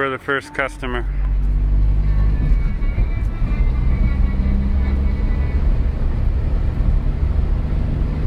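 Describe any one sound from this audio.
A car engine rumbles steadily while driving along a road.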